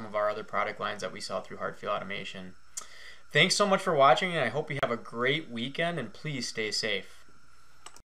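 A man talks calmly and clearly into a close microphone.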